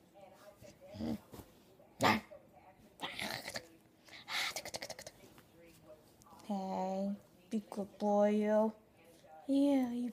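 A dog growls and howls playfully, close by.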